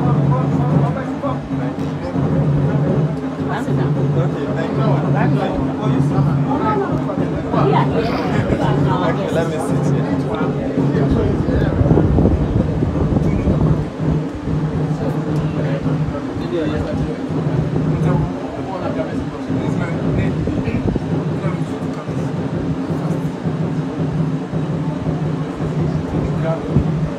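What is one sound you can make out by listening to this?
Several adults chat nearby in a room.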